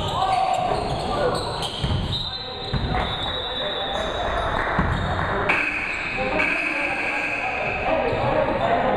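Basketball shoes squeak on a hardwood floor in a large echoing gym.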